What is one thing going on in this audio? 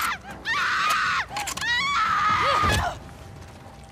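Heavy blows thud in a close struggle.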